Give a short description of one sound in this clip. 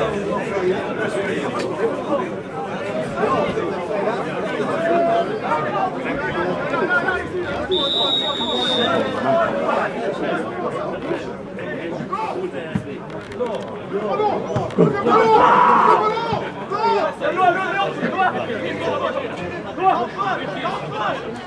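Players and spectators shout and call out across an open field.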